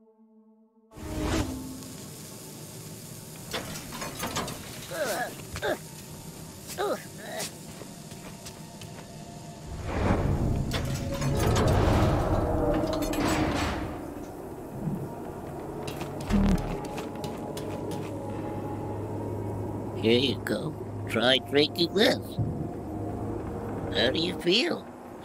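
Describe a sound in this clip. Game music plays with a low rumble.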